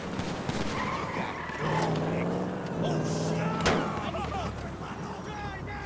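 A car engine revs as a car drives off.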